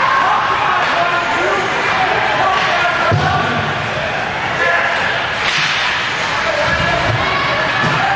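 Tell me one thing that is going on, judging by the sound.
Hockey sticks knock against a puck.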